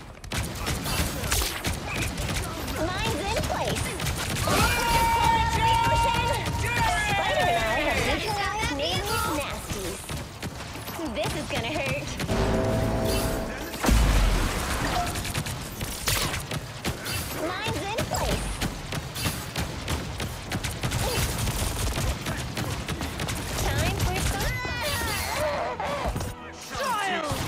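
Rapid gunfire crackles and rattles in bursts.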